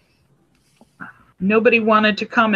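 A middle-aged woman speaks over an online call.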